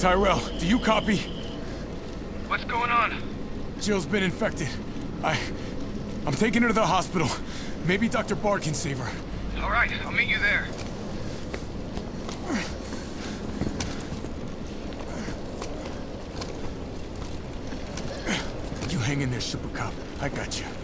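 A young man speaks urgently and breathlessly, close by.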